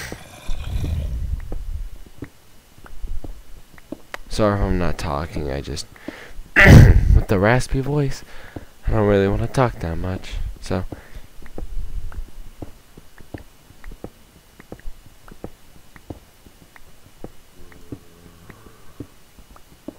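A video game pickaxe taps on stone blocks.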